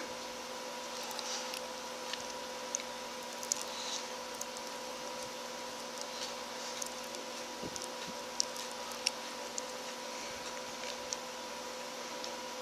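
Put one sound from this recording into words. Small plastic parts click and creak as hands twist them apart.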